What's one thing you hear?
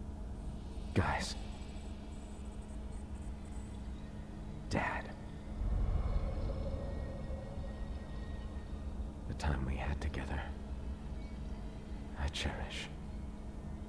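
A bright magical shimmer sweeps up and fades, several times.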